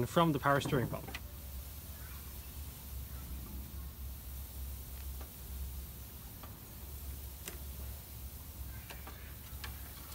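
Hands tug and rub against a rubber hose, with faint soft knocks.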